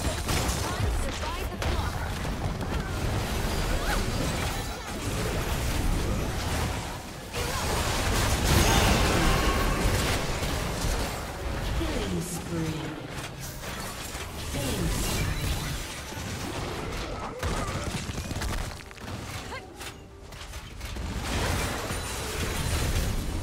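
Magic blasts and weapon hits crackle and clash in a fast game battle.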